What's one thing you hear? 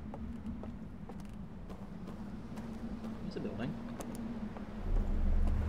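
Footsteps thud steadily on ground and then on wooden boards.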